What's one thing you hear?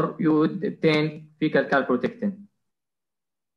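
A man speaks through an online call, then falls quiet.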